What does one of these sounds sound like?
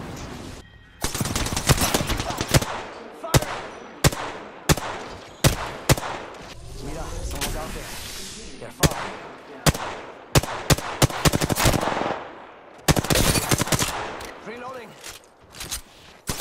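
Gunshots fire in sharp bursts, close by.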